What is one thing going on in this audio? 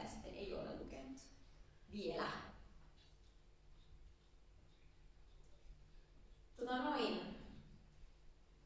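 A young woman speaks through a microphone in short phrases, with pauses, in an echoing hall.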